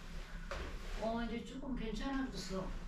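A woman answers softly from a short distance.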